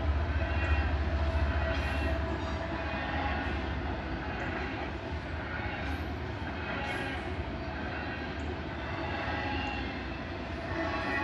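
A freight train rumbles and clanks steadily past at close range.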